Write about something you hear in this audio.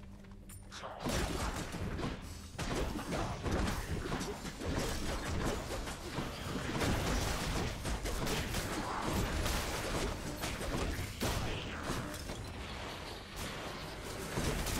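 Video game combat sounds of magic blasts and hits clash rapidly.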